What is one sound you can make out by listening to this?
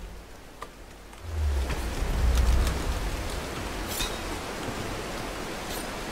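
Water rushes steadily down a rock face.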